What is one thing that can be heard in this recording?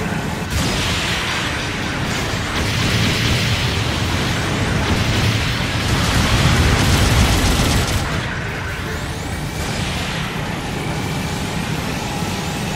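Laser beams crackle and hiss steadily.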